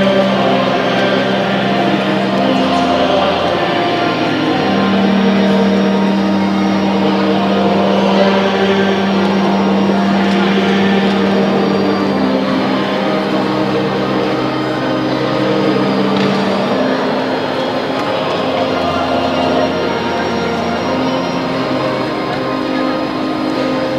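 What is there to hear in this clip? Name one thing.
A large congregation sings a slow hymn together in a large echoing hall.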